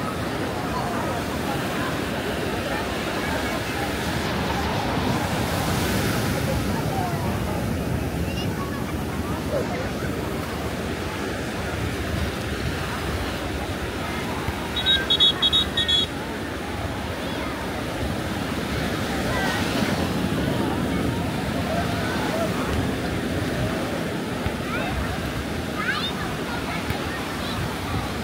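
A crowd of beachgoers chatters and calls out in the distance, outdoors.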